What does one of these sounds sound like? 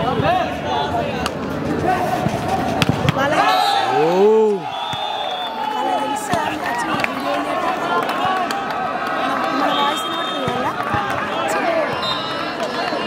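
A crowd cheers and shouts in a large open space.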